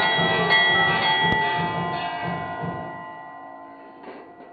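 A temple bell rings loudly and slowly fades.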